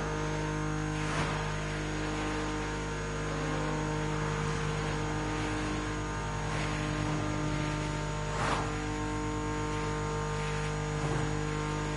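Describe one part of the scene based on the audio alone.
A powerful car engine roars steadily at high speed.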